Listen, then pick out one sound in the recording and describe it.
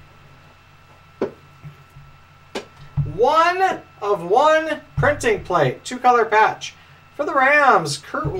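Cardboard boxes knock and scrape as hands handle them.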